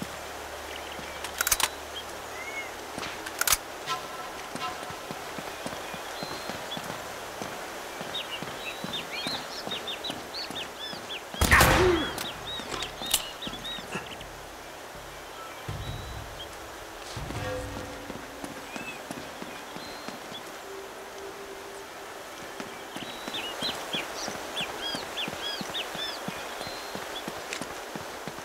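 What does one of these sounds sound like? Footsteps run over stone ground.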